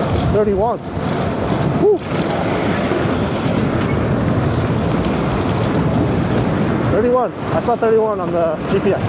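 Wind rushes steadily past while riding a bicycle outdoors.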